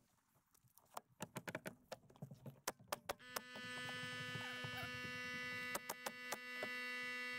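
A nail gun fires nails with sharp bangs.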